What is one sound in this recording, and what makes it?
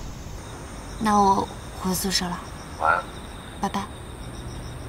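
A young woman speaks softly into a phone.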